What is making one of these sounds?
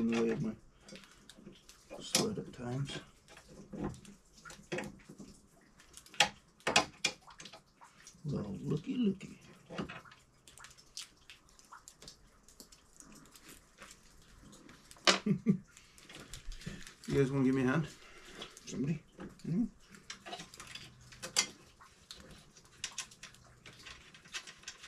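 Metal tools clink and click against metal.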